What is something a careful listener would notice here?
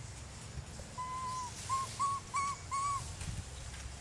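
A young monkey squeaks softly in short, high calls.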